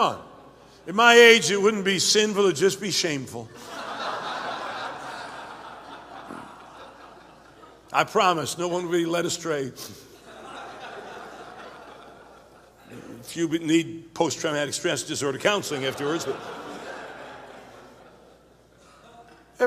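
A man preaches with animation into a microphone, his voice echoing through a large hall.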